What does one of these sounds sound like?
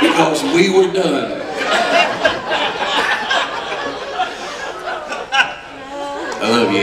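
Men laugh heartily nearby.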